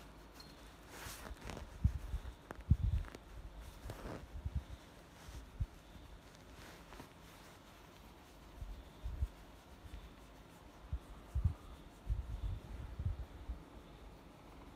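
Fingers rub and bump against a cat's fur close by.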